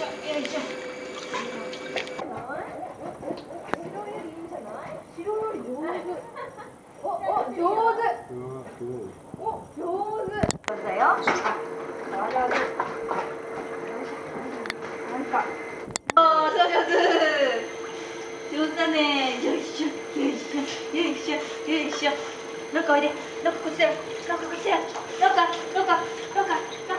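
Water sloshes and splashes gently around a swimming dog.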